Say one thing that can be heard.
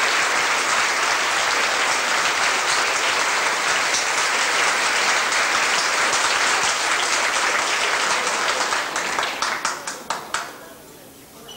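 A crowd applauds loudly in a large hall, then the clapping dies away.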